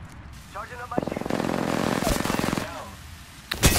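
An explosion roars and flames crackle.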